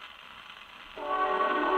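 Scratchy old-time music plays from a gramophone.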